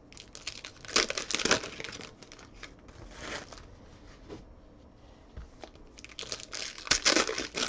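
Hands tear open a foil card pack with a crinkling rustle.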